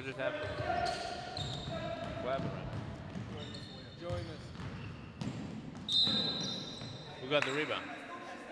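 Men call out to each other in an echoing gym.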